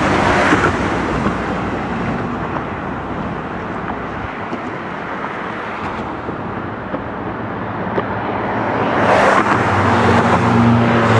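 Traffic rumbles steadily along a busy road, with cars passing close by.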